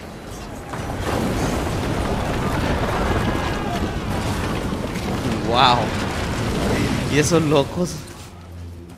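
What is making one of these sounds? A wooden ship crashes through ice, which cracks and scrapes.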